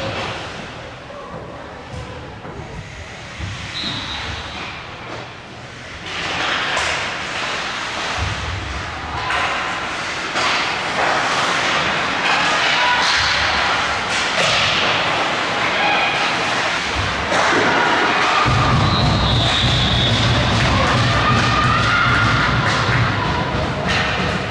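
Skate blades scrape and hiss across the ice in a large echoing rink.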